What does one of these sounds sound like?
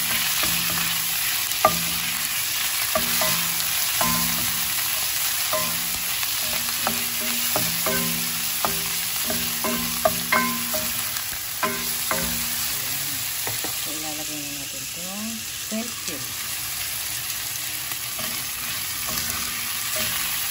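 Food sizzles steadily in a hot pot.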